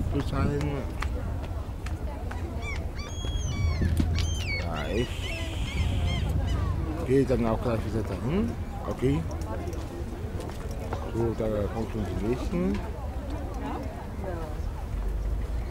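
A young man talks calmly, close to the microphone.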